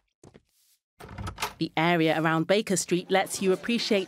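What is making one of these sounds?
A heavy door opens.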